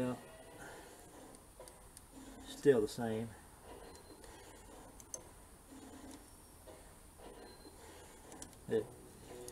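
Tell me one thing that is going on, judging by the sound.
Small metal engine parts click and tap together.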